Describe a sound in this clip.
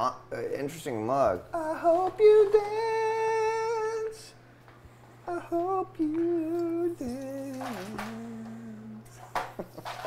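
A young man sings loudly and playfully close to a microphone.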